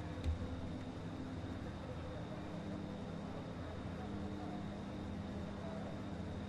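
A racing car engine hums steadily at low revs.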